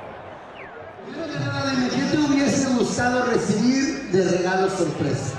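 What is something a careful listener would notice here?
A crowd of people chatters loudly in a large room.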